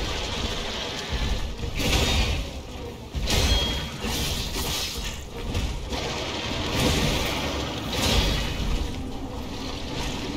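A large monster roars and growls.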